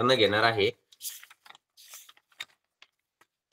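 Paper rustles as a sheet is turned over.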